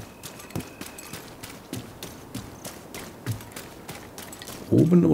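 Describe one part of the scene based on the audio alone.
Footsteps crunch steadily over damp ground.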